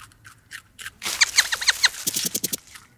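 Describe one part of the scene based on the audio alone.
A rabbit crunches on a carrot.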